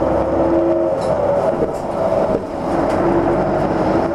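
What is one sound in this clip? A bus engine hums loudly as the bus drives past close by.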